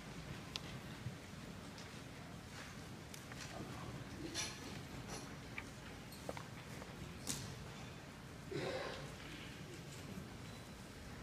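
A large orchestra plays softly in an echoing hall.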